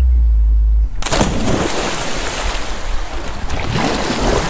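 Water splashes loudly as a person jumps into a pool.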